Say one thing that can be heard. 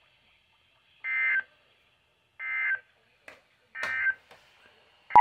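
A weather radio chirps in short beeps.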